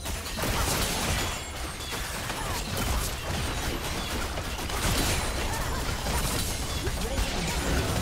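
Game spell effects crackle and burst in a fast fight.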